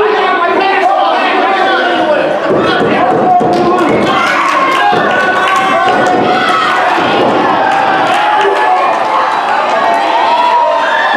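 A crowd of people talks and shouts in a large echoing hall.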